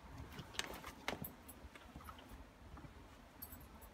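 Boots tread on soft ground.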